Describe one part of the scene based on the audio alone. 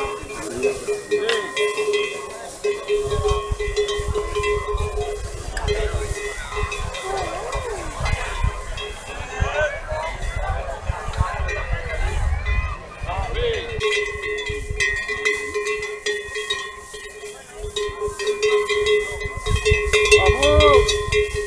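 Metal bells clank on the necks of a pair of oxen.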